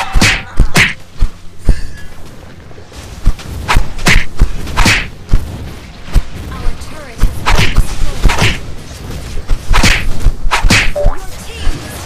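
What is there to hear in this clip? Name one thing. Magic blasts whoosh and burst again and again in quick bursts.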